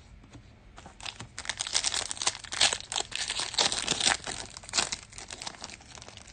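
A foil card pack crinkles and tears as it is opened.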